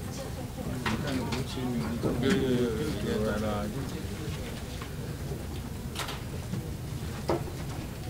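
People murmur and shuffle around a large room.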